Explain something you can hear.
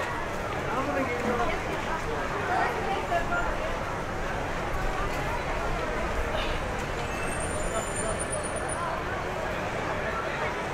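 A crowd of people chatters and talks all around outdoors.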